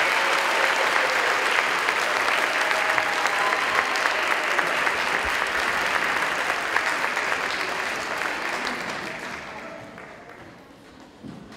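An audience applauds in a large hall, then the applause fades away.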